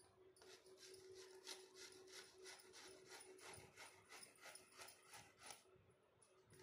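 A grater scrapes rapidly through cabbage.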